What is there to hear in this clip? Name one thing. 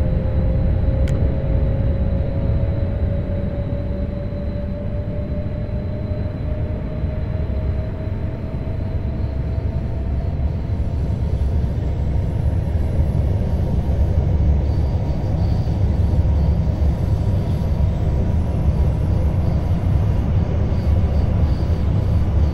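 A train rumbles steadily along the tracks, speeding up.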